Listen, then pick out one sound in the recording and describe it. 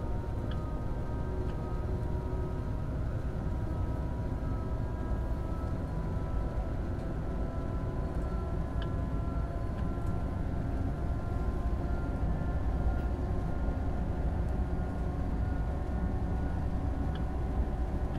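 An electric train hums and rumbles steadily along the track.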